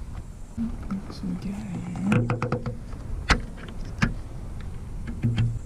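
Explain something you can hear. Plastic clicks and snaps as a trim piece is pried loose.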